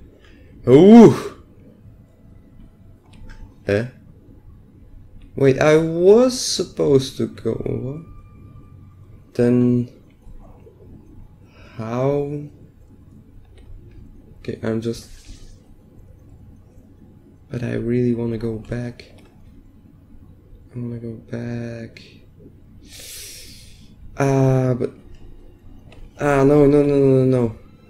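A boy talks with animation into a close microphone, in short bursts.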